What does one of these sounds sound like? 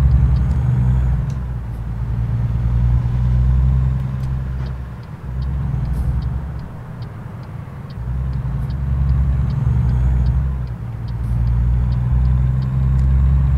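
A truck's diesel engine rumbles steadily, rising and falling with the throttle.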